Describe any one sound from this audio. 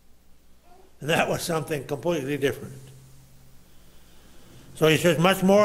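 An older man preaches with emphasis through a microphone.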